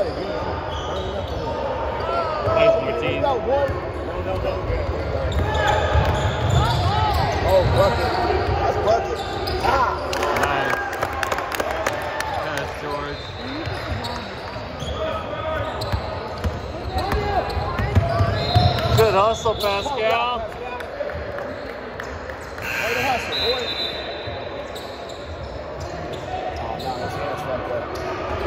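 A crowd of young people chatters and shouts in a large echoing gym.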